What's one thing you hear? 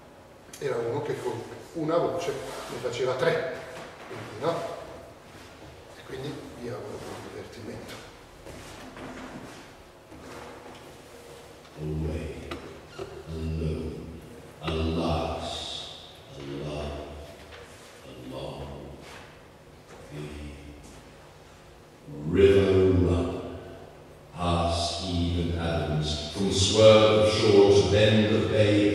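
A middle-aged man speaks expressively in a large echoing hall.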